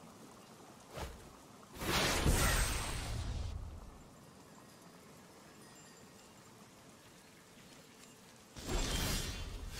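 A card game chimes with a short magical whoosh as a card is played.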